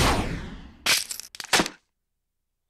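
Wooden swords thud into sand.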